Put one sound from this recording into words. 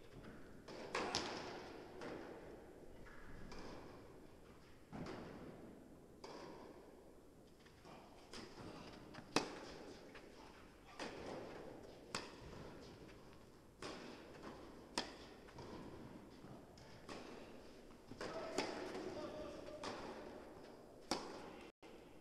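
Tennis balls are struck with rackets in a large echoing indoor hall.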